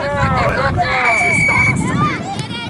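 A referee blows a whistle with one short, steady blast.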